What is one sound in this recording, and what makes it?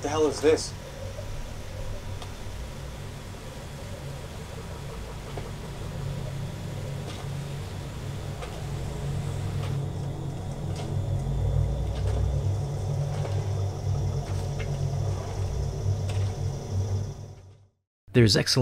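A low, rumbling movie soundtrack plays through loudspeakers.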